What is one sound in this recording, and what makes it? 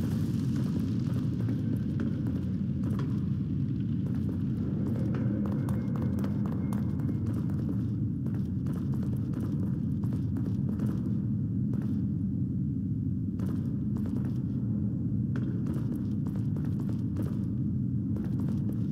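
Footsteps scuff slowly over a stone floor.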